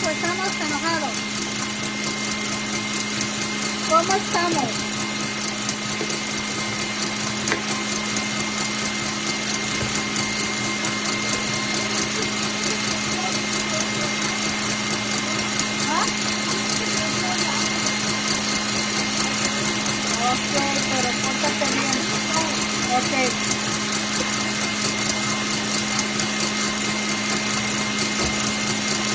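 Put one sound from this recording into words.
A stand mixer whirs steadily as its whisk beats batter.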